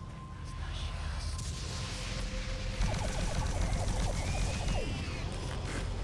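A gun fires a rapid burst of electric zaps.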